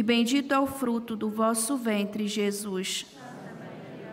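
A man chants steadily through a microphone, his voice echoing in a large hall.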